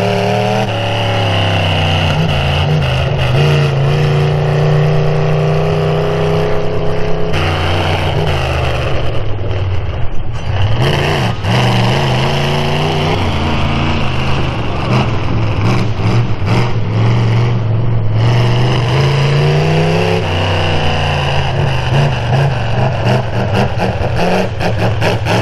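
A monster truck engine roars loudly and revs up and down.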